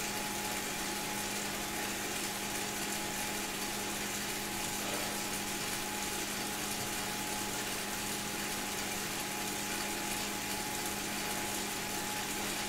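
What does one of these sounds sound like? A bike trainer whirs steadily as a rider pedals.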